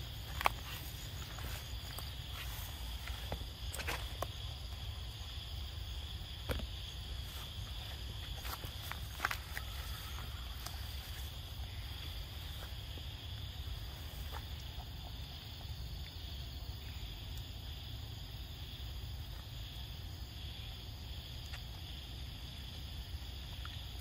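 A monkey bites and chews on a juicy fruit close by.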